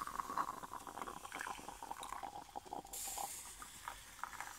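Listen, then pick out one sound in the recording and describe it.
Coffee pours from a stovetop pot into a ceramic mug.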